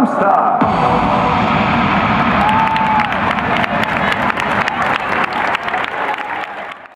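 A crowd of young women cheers and shouts in a large echoing hall.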